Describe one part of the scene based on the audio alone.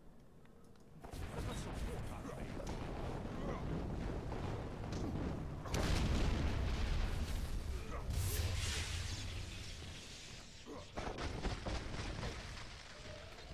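Magic spells crackle and roar.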